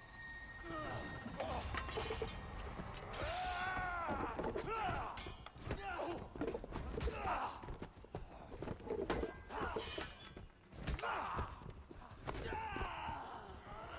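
Blows and bodies thud and knock during a fight.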